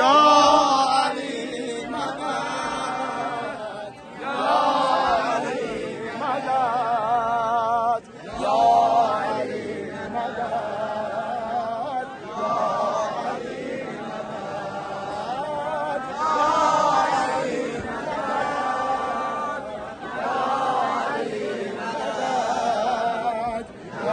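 A large crowd chants together in a big echoing hall.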